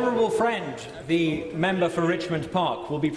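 A middle-aged man speaks loudly and firmly through a microphone.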